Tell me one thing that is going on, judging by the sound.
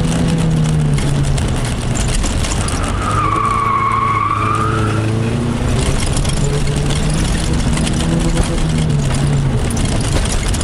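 A car engine roars and revs up and down, heard from inside the car.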